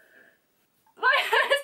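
A young woman speaks with excitement close to a microphone.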